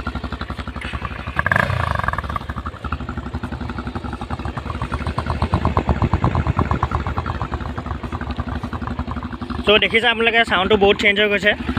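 A motorcycle engine idles with a rapid, steady throb.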